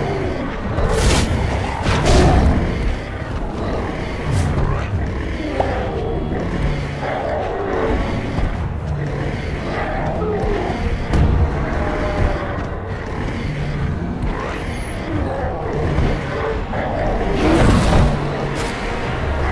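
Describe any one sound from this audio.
Heavy blows thud as huge creatures strike each other.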